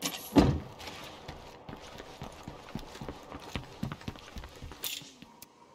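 Footsteps tread on a hard floor.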